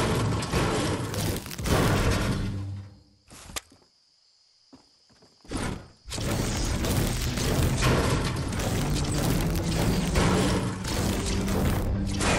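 A pickaxe strikes metal with repeated clanging blows.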